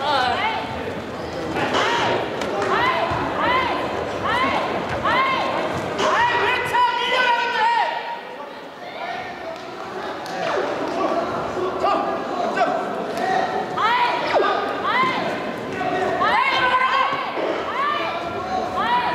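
Bare feet squeak and shuffle quickly on a mat.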